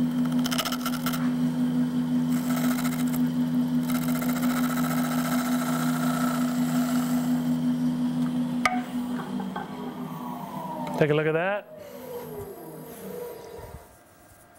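A lathe motor hums steadily, then winds down.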